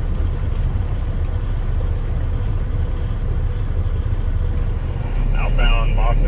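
Traffic hums steadily along a busy road.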